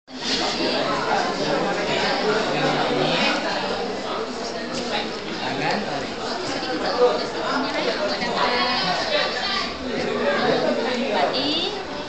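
Several women chat nearby.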